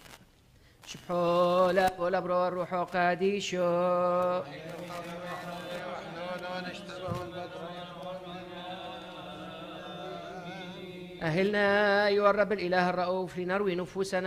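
A man sings a chant in a slow, steady tone, echoing in a large hall.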